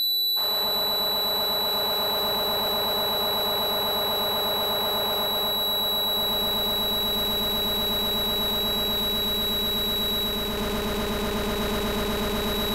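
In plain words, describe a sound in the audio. An electric machine hums steadily with a fast, even pulsing.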